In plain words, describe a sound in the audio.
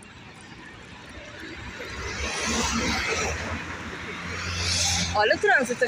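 Traffic rumbles past on a nearby street.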